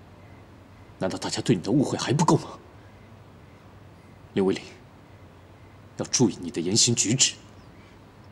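A young man speaks firmly and sternly.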